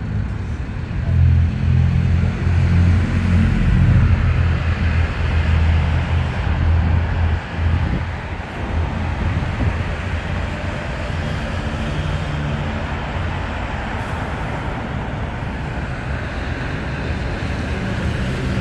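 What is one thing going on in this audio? Traffic rumbles steadily along a road below.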